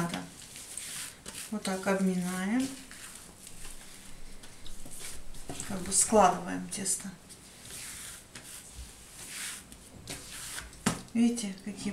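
Hands knead and press dough with soft thuds on a table.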